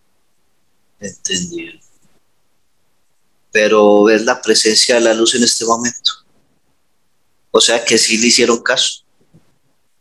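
A man speaks calmly through a headset microphone over an online call.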